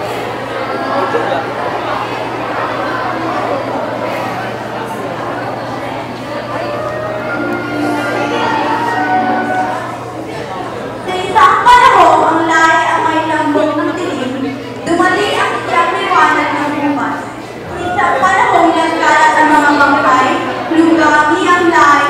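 Young performers sing together loudly in a large echoing hall.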